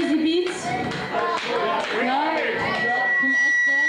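A woman sings into a microphone through loudspeakers.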